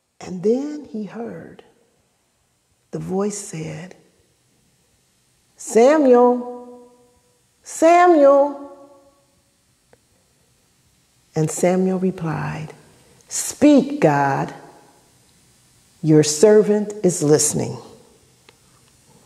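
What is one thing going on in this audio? A woman sings expressive phrases into a microphone, pausing between them.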